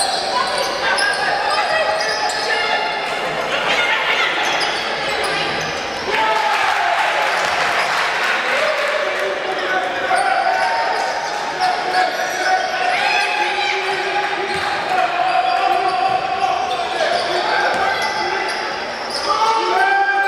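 Sneakers squeak on a hard court as players run.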